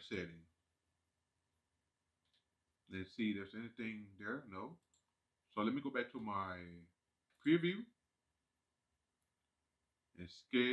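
A man talks calmly into a microphone in short bursts.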